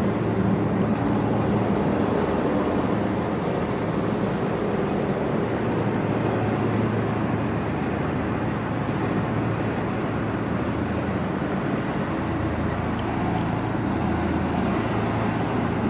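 A body rolls over and over on concrete pavement, scuffing and bumping.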